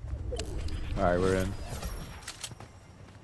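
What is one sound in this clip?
Footsteps patter quickly over dirt and grass.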